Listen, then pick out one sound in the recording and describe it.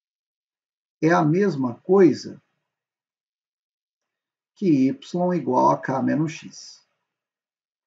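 A young man speaks calmly and close to a microphone, in short bursts.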